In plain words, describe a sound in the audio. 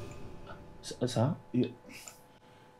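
A younger man speaks calmly, close by.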